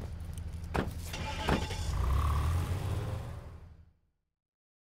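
A car engine starts and revs as the car pulls away.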